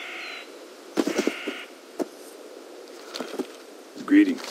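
Footsteps patter on dry ground.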